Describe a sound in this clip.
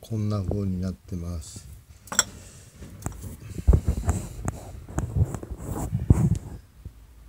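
A glass jar clinks as it is set down on a shelf.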